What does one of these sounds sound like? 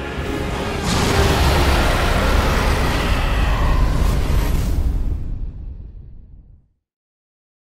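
A huge beast roars loudly, with a deep rumble.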